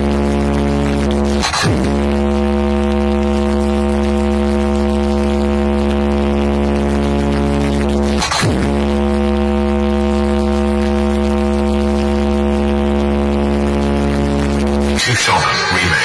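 Huge loudspeakers blare a loud, steady droning tone.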